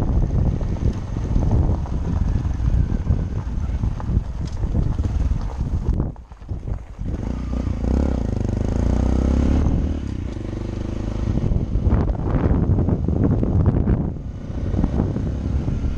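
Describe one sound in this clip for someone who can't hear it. A motorcycle engine hums and rumbles up close.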